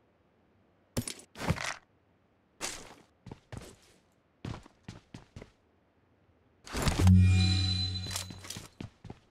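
An automatic rifle fires in bursts.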